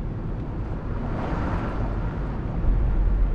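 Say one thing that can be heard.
A car whooshes past close by.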